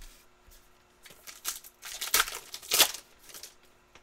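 A foil wrapper crinkles and tears as hands open a pack.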